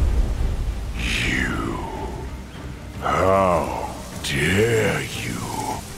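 A huge beast roars with a deep, rumbling growl.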